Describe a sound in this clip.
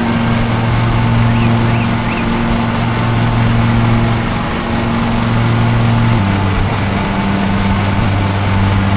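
A vehicle engine drones steadily, then shifts to a lower pitch.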